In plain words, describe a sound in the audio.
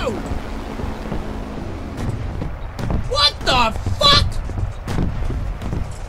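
A fighter plane crashes into grass and trees.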